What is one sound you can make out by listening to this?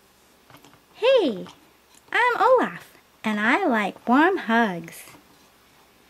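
A toy's small speaker plays a cheerful, sing-song voice.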